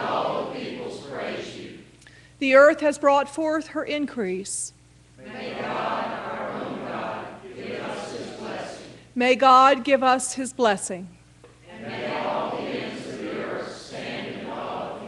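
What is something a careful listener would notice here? A choir and congregation recite together in unison in an echoing hall.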